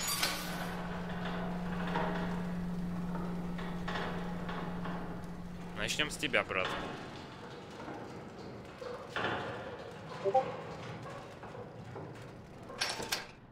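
A metal gurney rolls and rattles across a hard floor.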